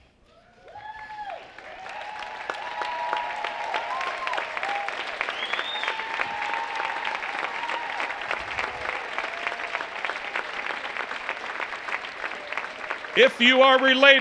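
A large crowd claps and applauds loudly.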